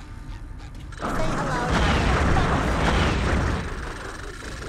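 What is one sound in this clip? Bubbles fizz and pop in a rush.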